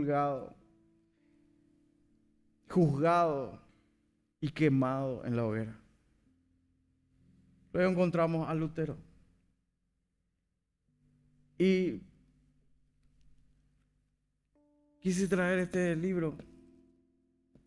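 A man speaks slowly and deliberately through a microphone, with pauses, in a large echoing hall.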